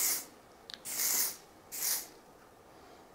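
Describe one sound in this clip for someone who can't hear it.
A hairspray can hisses in short bursts.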